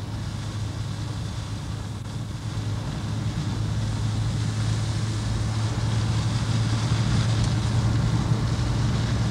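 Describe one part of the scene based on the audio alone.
A vehicle engine hums steadily from inside while driving.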